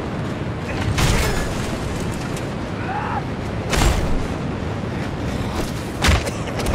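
Heavy punches land with loud thuds in a fight.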